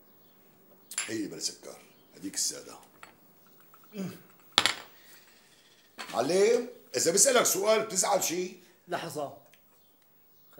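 An older man answers calmly, close by.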